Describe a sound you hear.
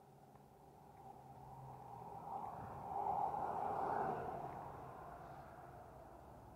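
A car drives past nearby.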